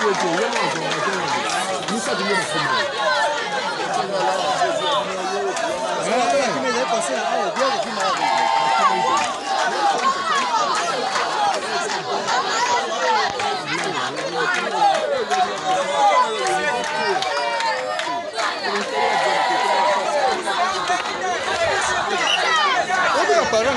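A large outdoor crowd chatters and shouts loudly.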